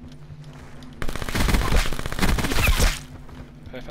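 Gunfire rattles in a rapid burst.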